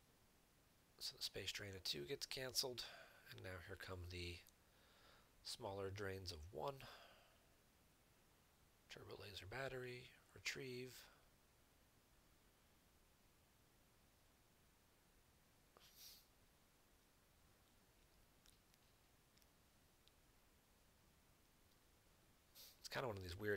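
A young man speaks calmly and casually into a close microphone, in short bursts with pauses.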